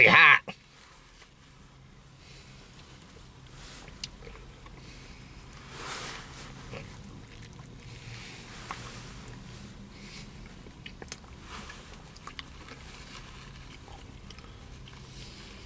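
A man chews food up close with soft smacking sounds.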